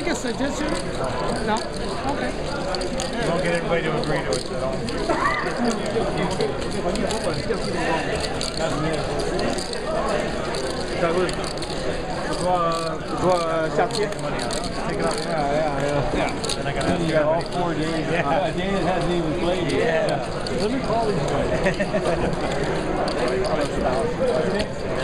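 Poker chips click together as a man shuffles them in his hand.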